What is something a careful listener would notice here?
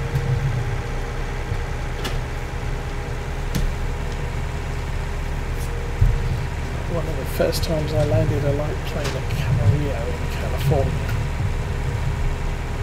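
A diesel farm tractor engine drones while driving.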